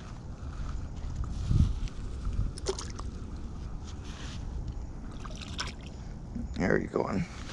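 A small fish splashes into water.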